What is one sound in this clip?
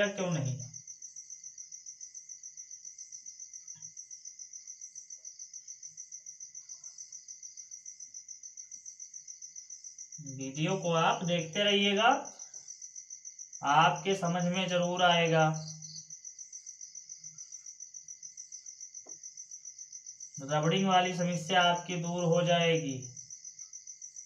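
A man speaks calmly nearby, in short phrases with pauses.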